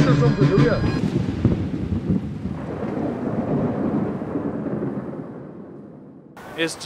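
Thunder rumbles and slowly fades.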